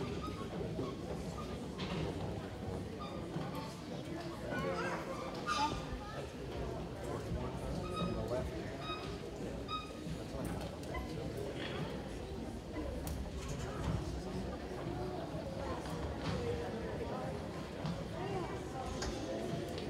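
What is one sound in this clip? A choir of young children sings together in a large echoing hall.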